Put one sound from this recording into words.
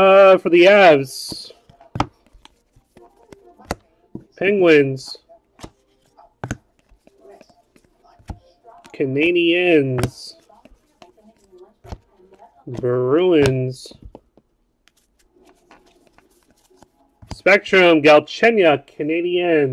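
Trading cards are flicked through by hand with soft clicks.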